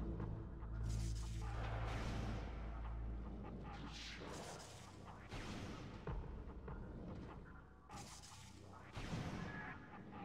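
Video game sound effects hum and whoosh as a rolling ball moves about.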